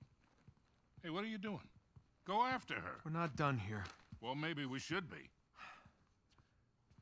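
An older man answers calmly, close by.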